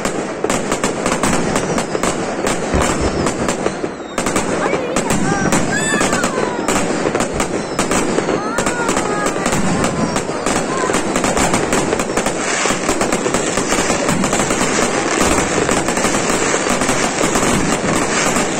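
Fireworks crackle and pop rapidly in a dense barrage.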